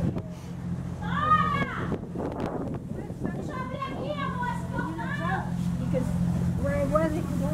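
An elderly woman talks and laughs with animation close by.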